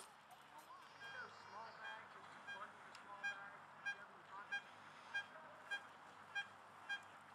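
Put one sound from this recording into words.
A metal detector beeps in short, evenly spaced bursts.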